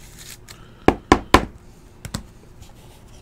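Cards and a small box knock and tap as they are handled.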